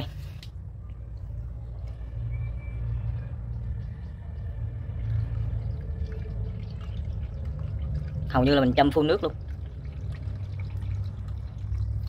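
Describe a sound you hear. Water pours from a kettle onto soil.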